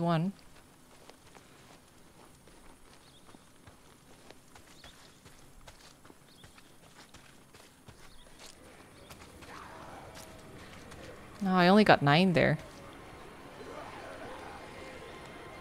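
Footsteps crunch through grass and brush.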